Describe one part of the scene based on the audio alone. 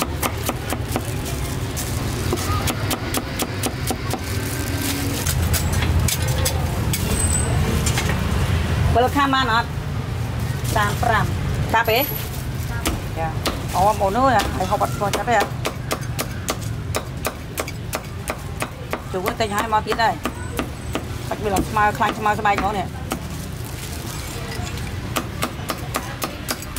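A cleaver chops rapidly through meat on a wooden board.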